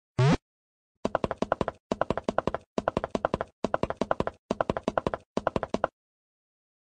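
A bright electronic jingle plays in quick, rhythmic notes.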